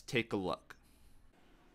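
A young man speaks briefly, close to the microphone.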